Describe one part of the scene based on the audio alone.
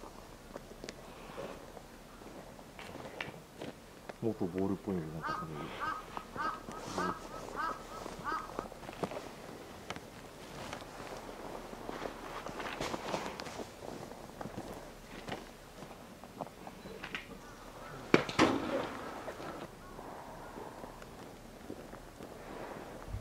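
A polar bear rolls and scrapes about in crunching snow.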